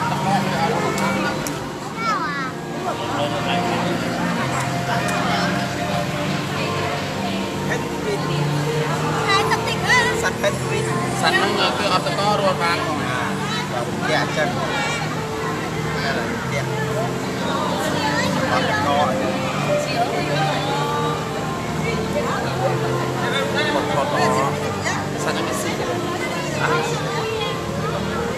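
A crowd of adults and children chatters nearby in an echoing indoor hall.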